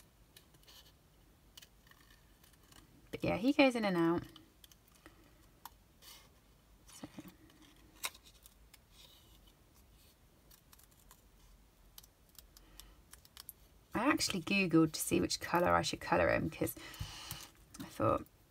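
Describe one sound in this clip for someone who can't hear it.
Scissors snip through thin card.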